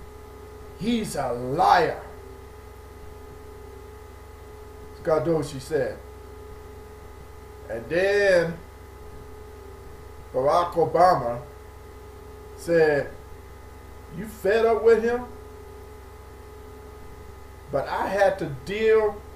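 A middle-aged man speaks slowly in short bursts, close to a microphone.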